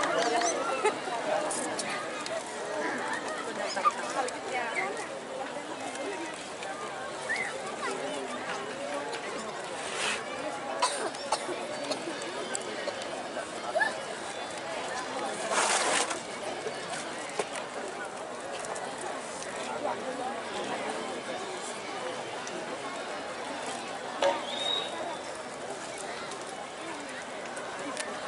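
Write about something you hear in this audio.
An audience murmurs nearby.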